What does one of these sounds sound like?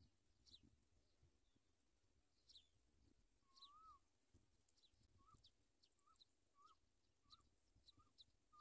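Nestling birds cheep with short, high, repeated calls.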